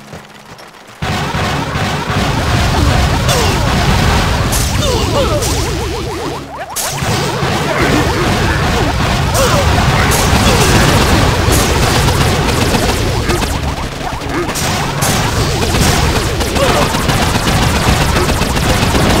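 Cannons fire and shells explode in a noisy battle.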